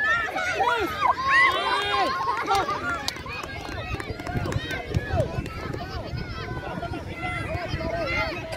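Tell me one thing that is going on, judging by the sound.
Children shout and cheer excitedly outdoors.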